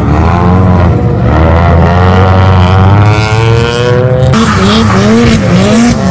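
Car tyres squeal on the road.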